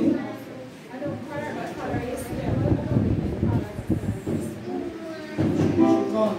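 Women in a small crowd talk and murmur together.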